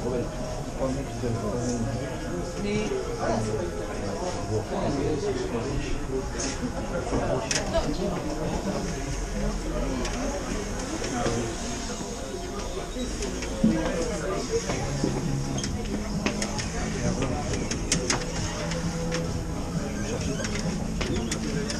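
Adults murmur and talk quietly nearby indoors.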